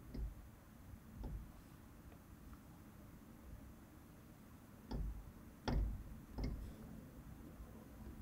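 Light taps land on a tablet.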